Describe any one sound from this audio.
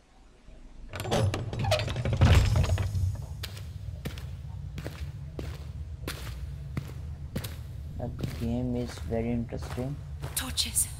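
Footsteps crunch steadily over rough stone.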